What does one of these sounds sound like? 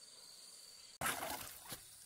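Water sprinkles from a watering can rose onto soil and leaves.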